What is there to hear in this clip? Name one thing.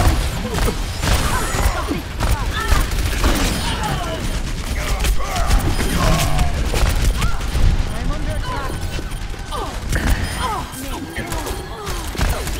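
Explosions boom.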